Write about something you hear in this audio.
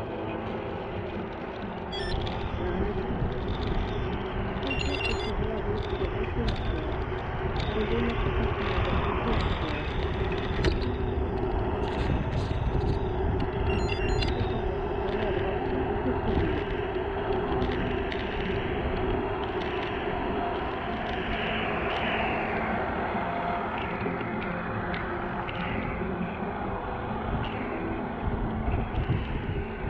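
Wind rushes and buffets past, loud and steady throughout.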